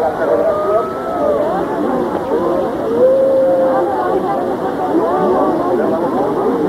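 A crowd of men and women chatters and calls out loudly all around.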